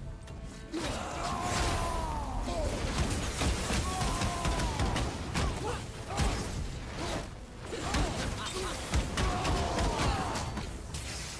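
Heavy blows land with sharp crashes.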